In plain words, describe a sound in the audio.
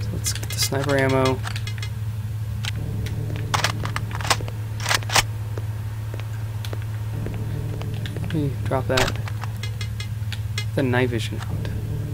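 A young man talks close to a microphone in short bursts.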